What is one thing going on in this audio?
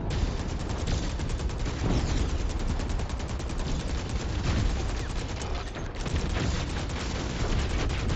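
Laser weapons zap repeatedly.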